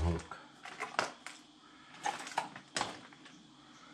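A plastic lid clicks and snaps onto a bucket.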